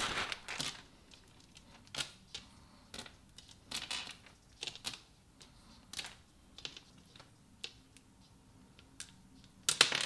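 Plastic beads click against each other as they are dropped one by one.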